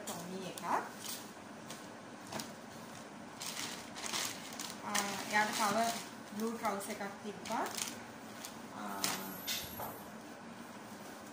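Fabric rustles as clothing is unfolded.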